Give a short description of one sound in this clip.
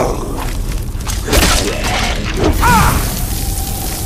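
A creature groans and snarls.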